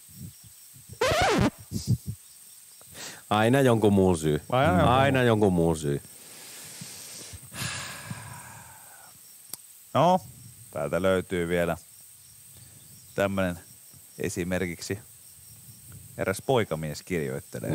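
A young man speaks with animation into a headset microphone, close by.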